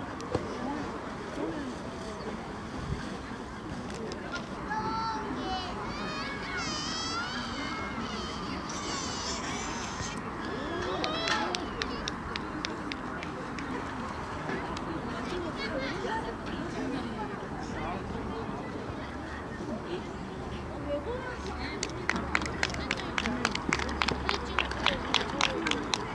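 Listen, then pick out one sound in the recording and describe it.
A crowd of people chatters steadily nearby outdoors.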